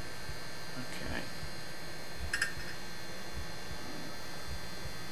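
A man speaks quietly close to a microphone.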